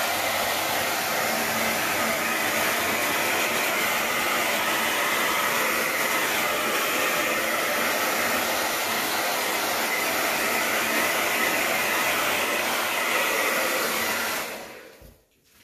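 A hair dryer blows with a loud, steady whoosh, then switches off.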